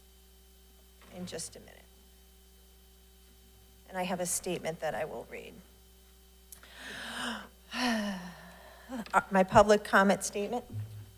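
A woman speaks calmly through a microphone in a large room.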